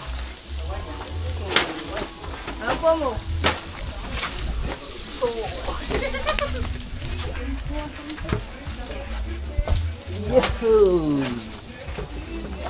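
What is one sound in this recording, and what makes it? A young man talks casually nearby.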